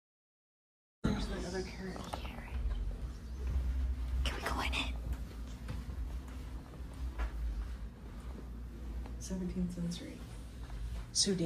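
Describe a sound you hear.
Footsteps pad softly on carpet.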